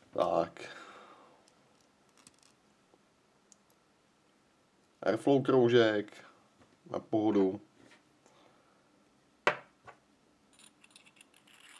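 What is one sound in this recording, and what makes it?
Small metal parts clink and click as they are handled.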